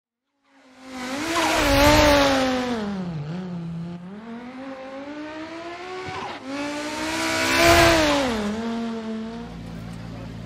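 A rally car engine roars past at high revs, rising and falling in pitch.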